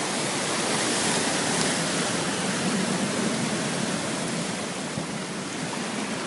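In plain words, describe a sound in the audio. A car drives fast through deep floodwater, sending up a loud splashing spray.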